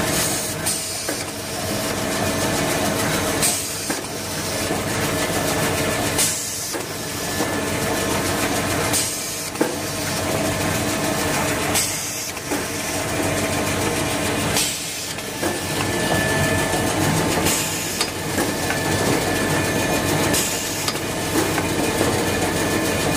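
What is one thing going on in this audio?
A machine hums and whirs steadily.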